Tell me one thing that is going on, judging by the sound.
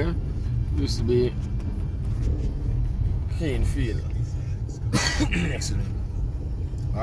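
A car engine hums as the car drives along a road.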